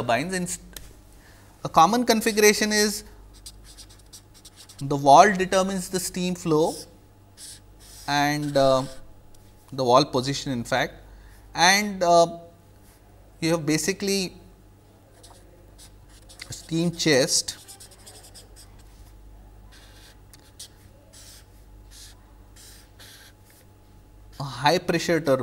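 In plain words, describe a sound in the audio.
A man speaks calmly and deliberately into a close microphone, with long pauses.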